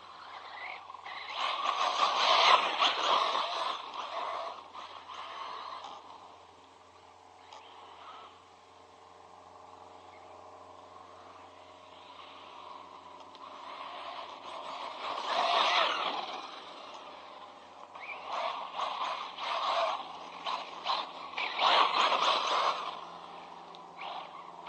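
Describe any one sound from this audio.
Toy car wheels crunch and rattle over dirt and gravel.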